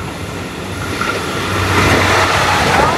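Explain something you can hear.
Train wheels clatter on the rails as a train passes close by.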